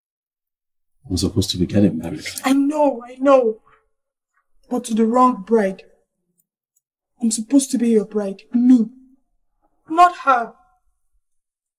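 A woman speaks tensely, close by.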